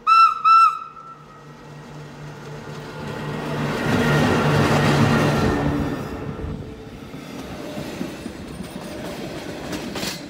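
An electric train rumbles and clatters past on rails, close by.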